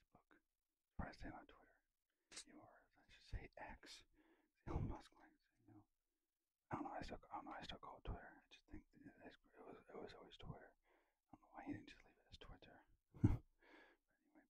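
A middle-aged man speaks softly and close to a microphone.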